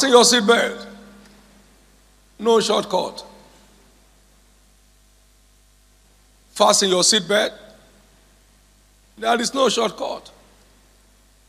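A middle-aged man speaks into a microphone in short, lively bursts with pauses, in a reverberant hall.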